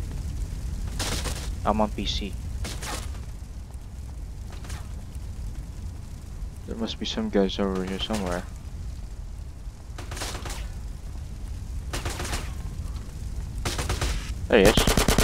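A submachine gun fires short bursts.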